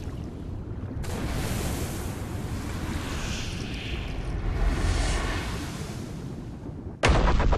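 Bubbles gush and stream past underwater.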